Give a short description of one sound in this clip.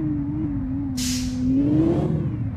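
Tyres squeal briefly on a sharp turn.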